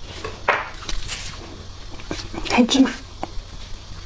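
A soft cake is pulled apart by hand.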